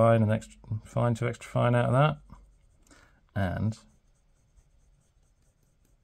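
A fountain pen nib scratches softly on paper.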